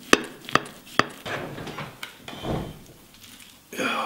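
A knife crunches through a crusty crust.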